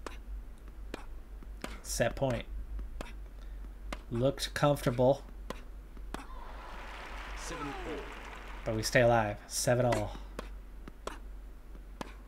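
A tennis ball is struck with sharp pops of the racket.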